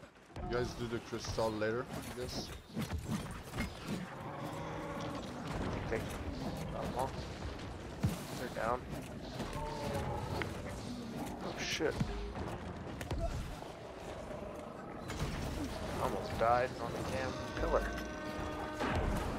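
A large creature growls and roars.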